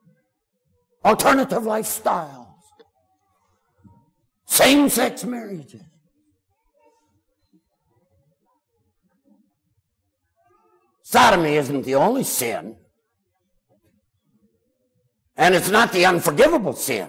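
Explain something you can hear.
An elderly man preaches slowly and with emphasis into a microphone, pausing between phrases.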